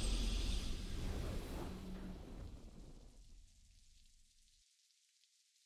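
A game's victory fanfare booms and fades away.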